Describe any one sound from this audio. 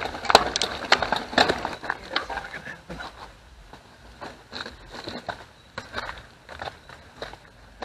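A bicycle frame and chain clatter over bumps.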